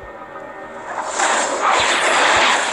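Magical blasts and clashing weapons burst loudly in a fight.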